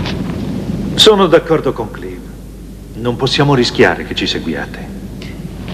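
A man speaks in a low, serious voice.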